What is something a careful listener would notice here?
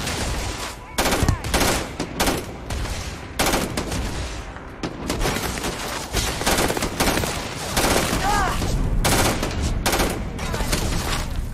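Rapid gunfire rings out in bursts, with loud sharp cracks.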